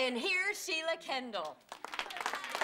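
A woman speaks loudly and excitedly into a microphone.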